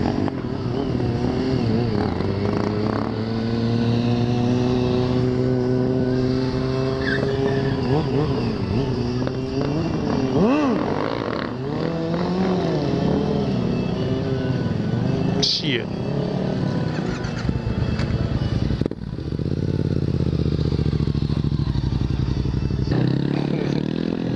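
Another motorcycle engine whines as it rides around at a distance.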